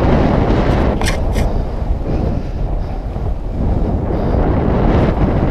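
Fabric flaps and rustles in the wind.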